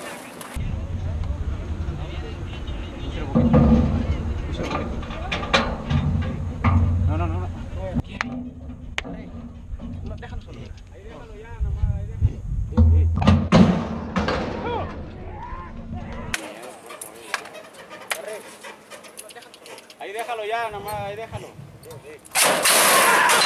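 Men talk and call out to each other nearby.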